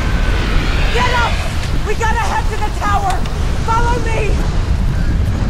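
A young woman shouts urgently, close by.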